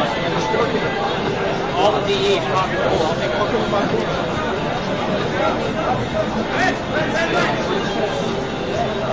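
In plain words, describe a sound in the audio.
A crowd of people chatter in a large echoing room.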